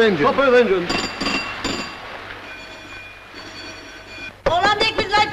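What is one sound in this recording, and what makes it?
A ship's engine telegraph rings with bright bell tones.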